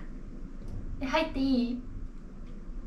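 A young woman asks a question softly nearby.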